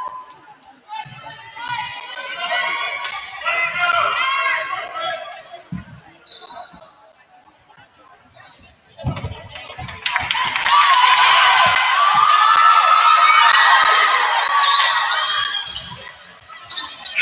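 Young women cheer and shout loudly in an echoing gym.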